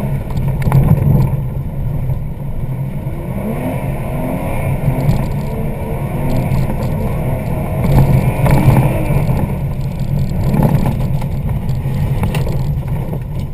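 Tyres crunch and rumble over a snowy road.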